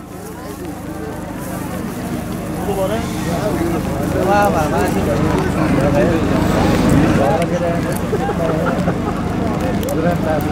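A large crowd of men shouts and calls out from a distance, outdoors.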